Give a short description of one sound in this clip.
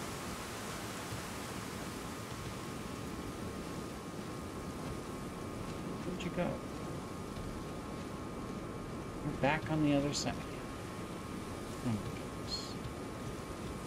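Dry grass rustles underfoot.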